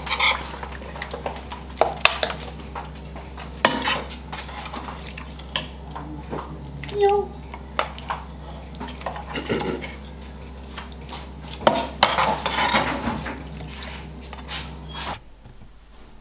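A metal spoon scrapes and clinks against a plate.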